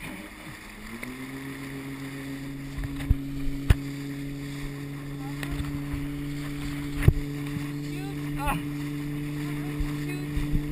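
A boat engine hums steadily and rises as the boat pulls away.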